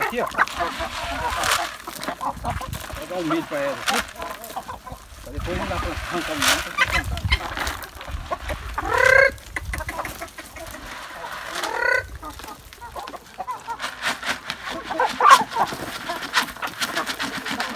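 Hens cluck and peck around.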